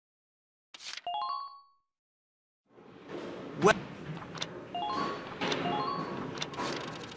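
A game menu chimes with short rising beeps as selections are made.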